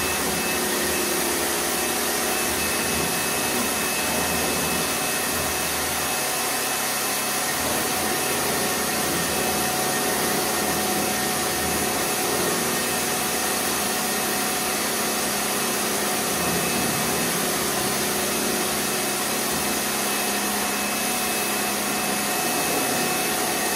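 A pressure washer sprays water against a wall with a steady hiss.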